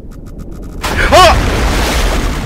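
A young man screams loudly into a microphone.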